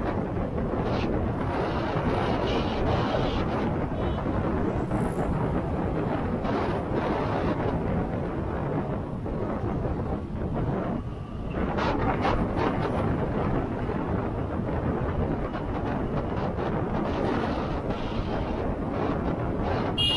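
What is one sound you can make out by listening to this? Wind buffets the microphone loudly.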